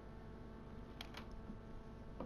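Soft computer interface clicks sound as menu items are selected.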